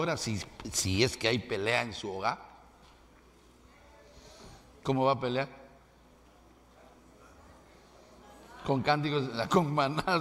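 A middle-aged man preaches with animation through a microphone, pausing between phrases.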